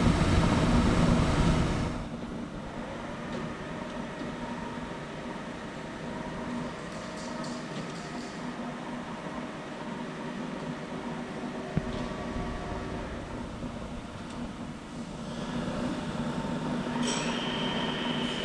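A large machine hums steadily.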